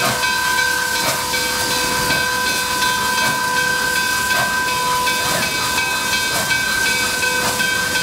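A steam locomotive chuffs in loud, rhythmic bursts as it approaches.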